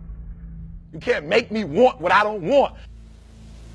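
A man speaks loudly and with animation.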